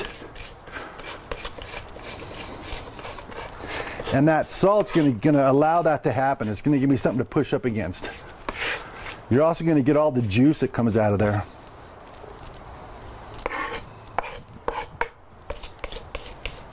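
A knife chops rapidly on a wooden board.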